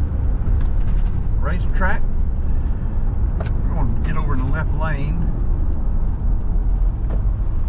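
A car engine hums steadily as tyres roll over the road.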